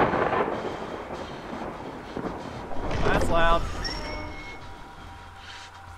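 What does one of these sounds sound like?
Heavy wooden doors creak open.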